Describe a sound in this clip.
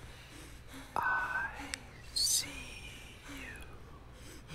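A young woman speaks softly and briefly close to a microphone.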